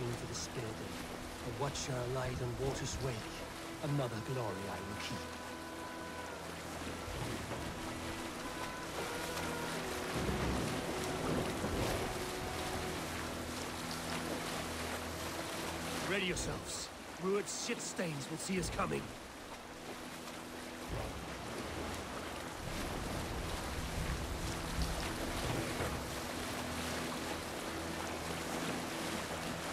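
Rain patters steadily on the sea.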